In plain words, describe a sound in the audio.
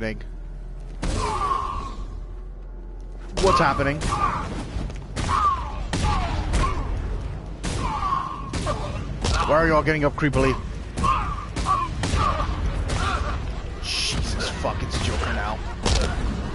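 Punches and kicks land with heavy thuds in quick succession.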